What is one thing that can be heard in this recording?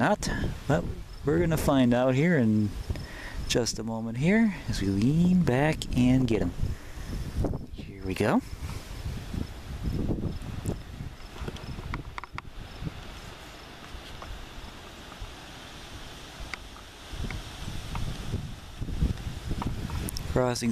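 Wind blows outdoors and rustles through tall grass.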